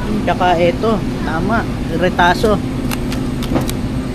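Plastic wrapping crinkles as a hand handles meat packages.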